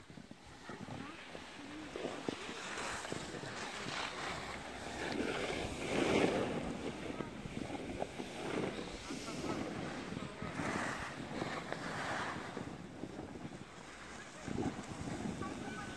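Skis scrape and swish over packed snow.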